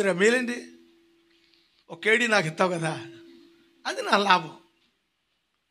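An elderly man preaches with animation into a microphone, heard through loudspeakers.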